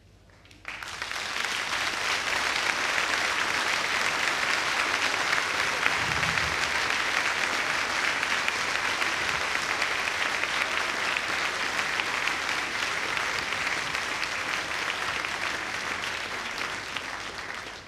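A large audience applauds loudly in a big echoing hall.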